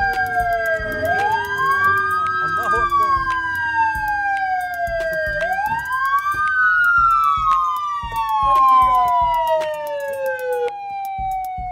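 A police siren wails up and down close by.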